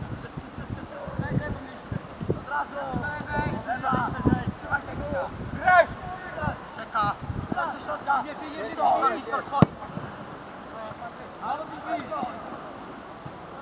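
Children shout to each other across an open field.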